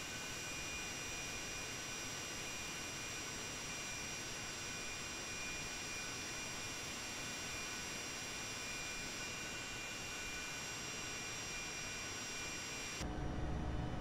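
Jet engines roar and whine steadily as a plane flies past.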